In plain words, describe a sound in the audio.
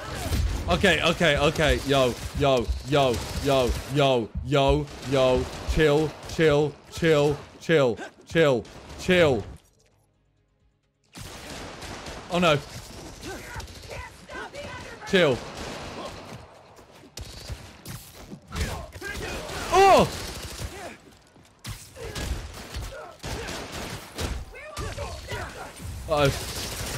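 Punches and kicks thud in a video game fight.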